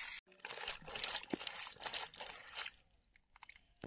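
Water sloshes as a hand stirs vegetable pieces in a metal bowl.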